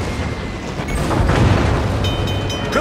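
Shells explode with loud rumbling bursts.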